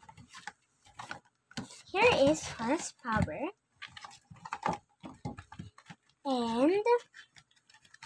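Cardboard tears as hands rip the packaging apart.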